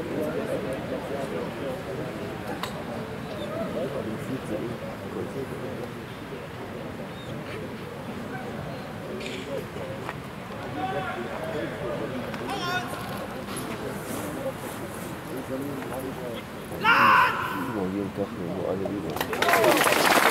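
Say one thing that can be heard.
A crowd murmurs and chatters outdoors nearby.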